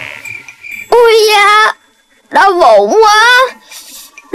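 A child wails loudly in a cartoon voice.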